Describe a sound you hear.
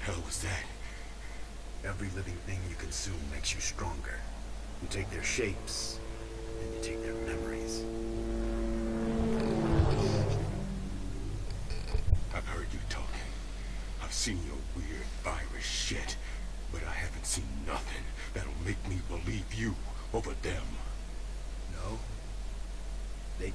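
A man speaks tensely and defiantly.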